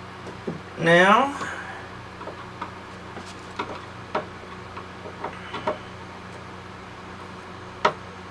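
A metal guide clicks and clacks as it is slid and adjusted on a saw table.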